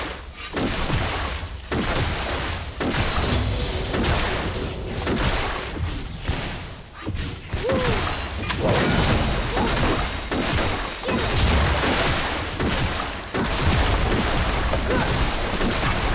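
Game spells and attacks crackle and clash in a fight.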